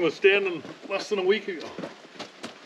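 A man speaks calmly nearby outdoors.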